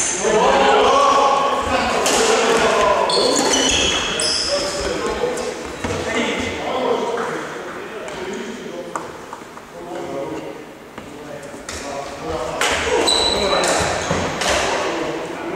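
Men talk with one another in an echoing hall.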